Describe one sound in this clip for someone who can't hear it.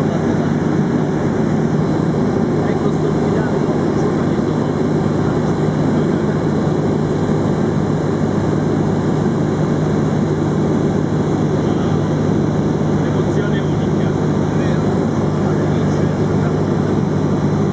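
A small plane's engine drones loudly and steadily from inside the cabin.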